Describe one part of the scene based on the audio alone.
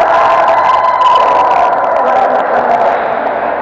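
A volleyball is struck with a dull thump.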